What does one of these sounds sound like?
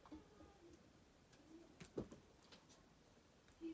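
Cards shuffle softly between hands.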